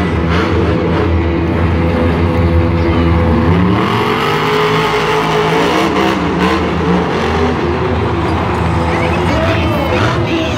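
A monster truck engine roars loudly and revs.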